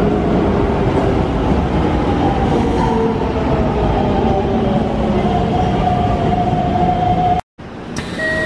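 Train brakes squeal with a long, high whine as the train slows.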